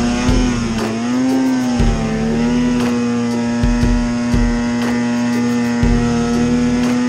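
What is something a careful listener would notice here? A snowmobile engine drones loudly and steadily up close, its pitch wavering slightly.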